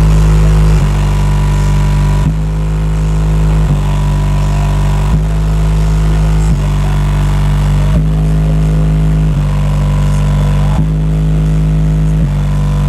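A car stereo pounds out very loud, deep bass notes that change every second or so.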